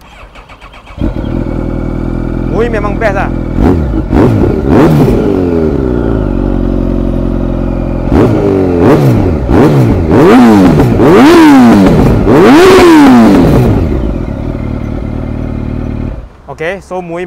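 A motorcycle engine starts up and idles with a deep rumble.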